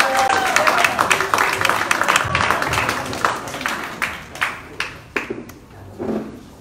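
An audience claps and cheers in a room.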